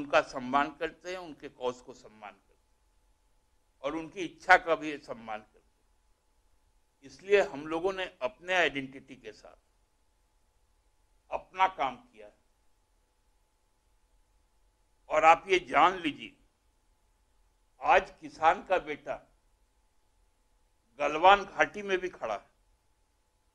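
A man speaks into a microphone in short bursts, with long pauses between them.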